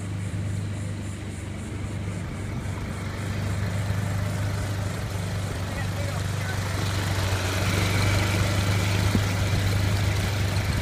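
A small outboard motor hums steadily.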